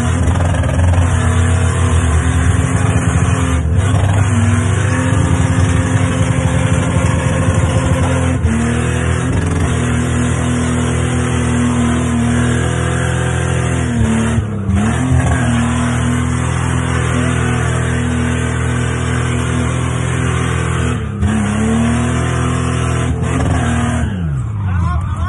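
A car engine screams at high revs, dipping briefly at each gear change.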